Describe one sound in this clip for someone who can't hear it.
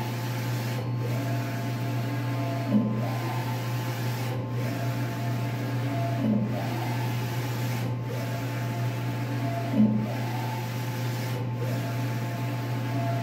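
A printer's print head whirs back and forth in a repeating rhythm.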